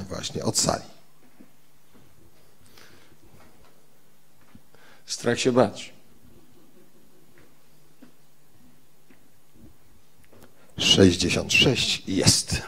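A man speaks into a microphone over loudspeakers, with pauses, in an echoing hall.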